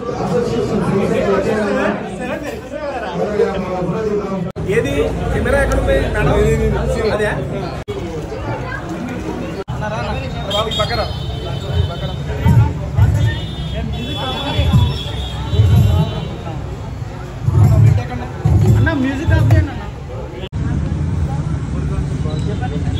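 A crowd of men chatter loudly all around.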